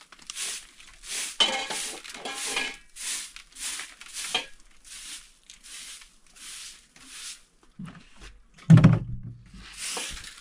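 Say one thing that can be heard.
A straw broom sweeps a floor in quick, rhythmic strokes.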